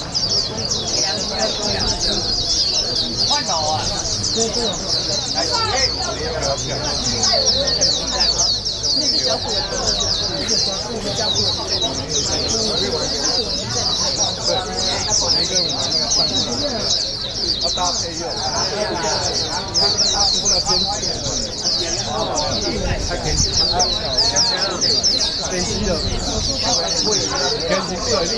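Many caged birds chirp and twitter busily all around.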